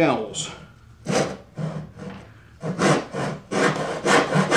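A hand saw cuts through wood in steady strokes.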